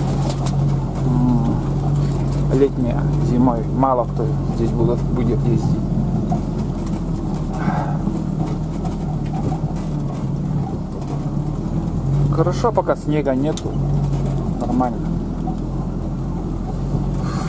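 Tyres crunch over packed snow.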